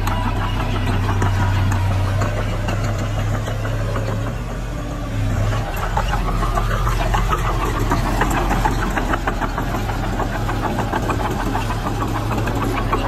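Dirt and stones scrape and tumble in front of a bulldozer blade.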